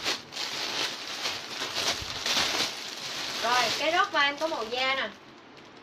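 A paper bag and fabric rustle.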